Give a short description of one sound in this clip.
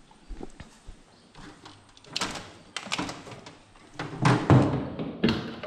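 A plastic plug clicks and rattles as it is handled.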